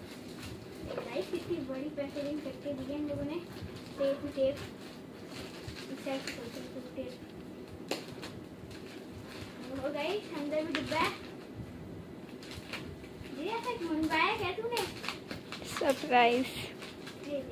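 A child speaks with animation close by.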